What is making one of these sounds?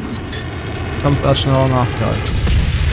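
A launcher fires with a heavy boom.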